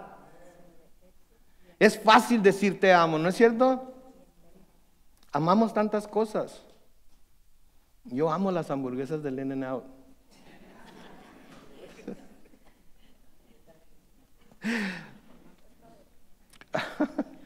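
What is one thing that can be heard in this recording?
A middle-aged man speaks calmly and expressively in bursts, heard in a large room with some echo.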